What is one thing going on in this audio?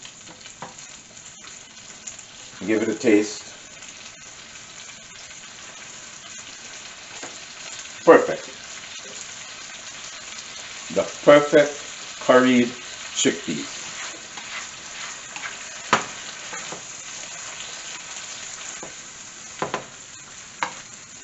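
A spatula stirs and scrapes food in a frying pan.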